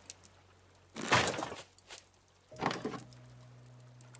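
Wooden pieces knock and clatter as something is put down.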